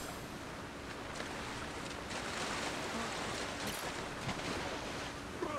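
Water splashes and washes around steadily.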